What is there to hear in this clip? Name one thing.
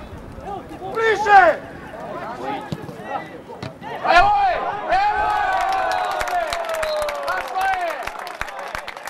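Men shout and cheer loudly outdoors.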